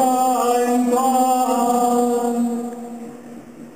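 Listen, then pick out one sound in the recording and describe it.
A woman sings long held notes in a large echoing hall, and the notes ring out and fade.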